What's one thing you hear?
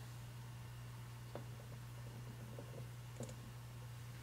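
Metal parts clink softly as they are fitted together.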